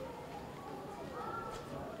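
Water pours from a kettle.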